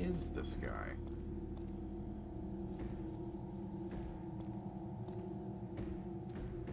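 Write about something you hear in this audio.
Footsteps tread slowly on soft ground.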